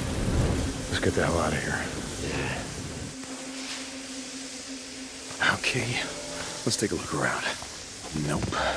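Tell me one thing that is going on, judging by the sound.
A man speaks calmly and briefly.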